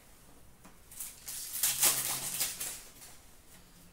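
Cards rustle and flick as they are shuffled through by hand.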